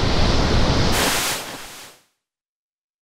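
A loud blast bursts and fades.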